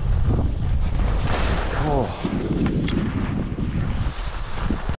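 Wind buffets the microphone in strong low gusts.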